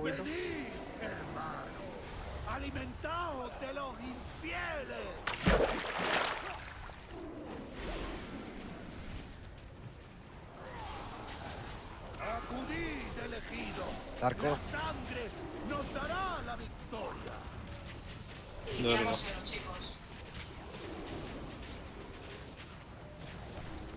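Spell effects whoosh and crackle in a busy fantasy battle.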